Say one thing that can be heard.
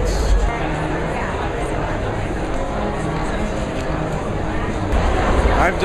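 A crowd chatters in a large echoing room.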